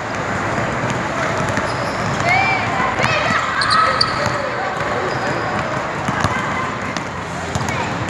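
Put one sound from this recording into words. Basketballs bounce with thuds on the floor.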